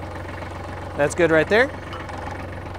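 A man speaks briefly over a running engine.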